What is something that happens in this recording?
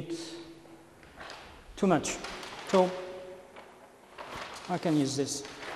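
A large paper sheet rustles as it is flipped over.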